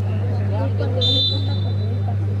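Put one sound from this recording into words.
A referee blows a short whistle blast.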